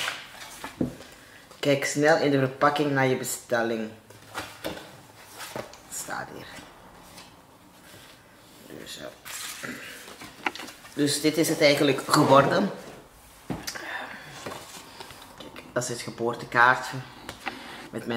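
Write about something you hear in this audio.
Paper rustles and crinkles as a card is handled.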